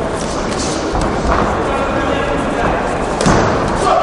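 Boxing gloves thump as punches land.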